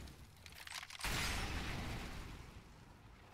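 A rifle fires a shot that rings out and fades.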